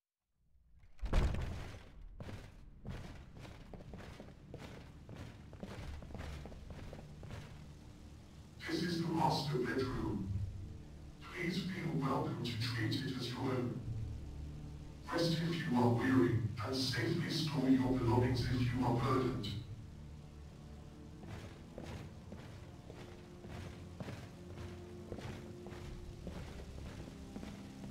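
Footsteps clatter on a wooden floor.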